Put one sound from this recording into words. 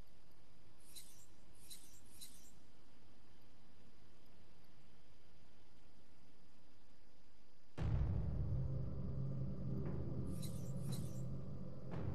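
Short, soft electronic blips sound as menu items change.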